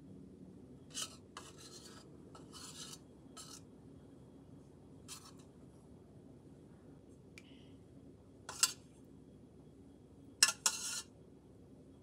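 A metal spoon clinks against a metal pot.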